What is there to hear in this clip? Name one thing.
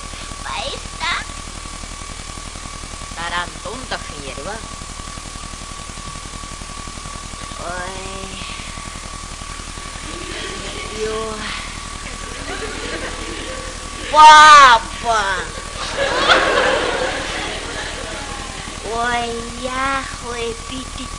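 A middle-aged woman speaks expressively, with pauses.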